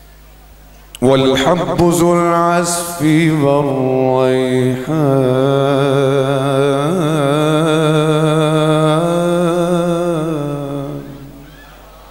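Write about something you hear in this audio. A man sings loudly through a microphone, holding long wavering notes.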